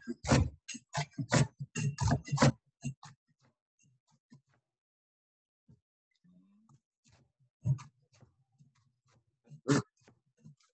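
A knife chops through leafy greens on a cutting board.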